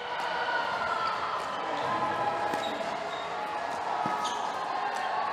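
Paddles pop against a plastic ball in a quick rally.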